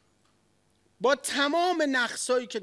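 A middle-aged man speaks loudly and with passion into a microphone.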